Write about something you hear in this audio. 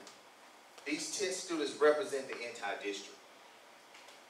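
A man speaks calmly into a microphone over a loudspeaker in a large room.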